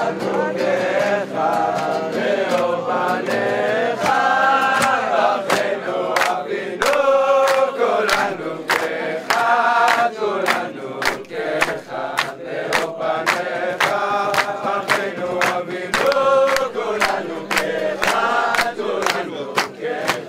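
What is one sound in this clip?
A group of young men sings loudly together.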